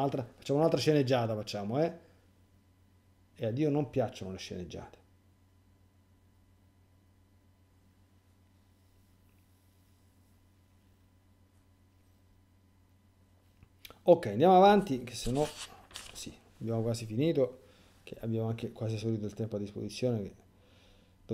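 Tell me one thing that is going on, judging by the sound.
A middle-aged man speaks calmly and thoughtfully into a nearby microphone, with long pauses.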